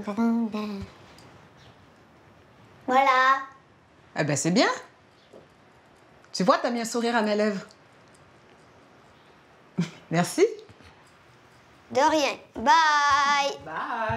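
A girl speaks brightly and playfully, close by.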